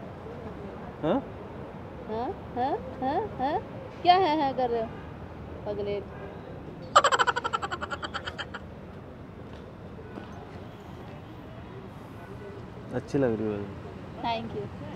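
A young woman talks nearby with animation.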